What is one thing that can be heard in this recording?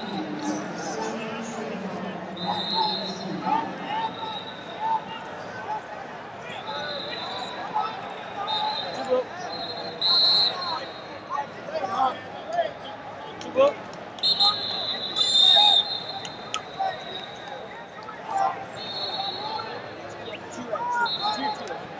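A large crowd murmurs and calls out in an echoing arena.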